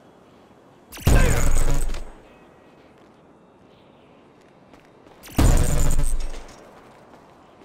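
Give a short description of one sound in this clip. A magical whoosh bursts out and fades.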